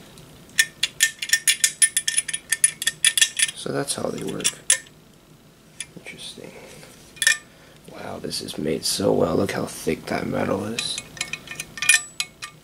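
Metal parts clink and rattle as they are handled.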